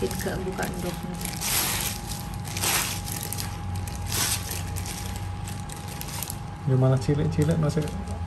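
Gloved fingers press a ball into dry breadcrumbs.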